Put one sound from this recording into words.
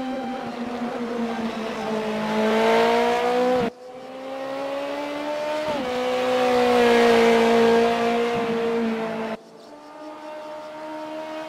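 A racing car engine roars loudly, its pitch climbing steadily and dropping suddenly as it shifts gears.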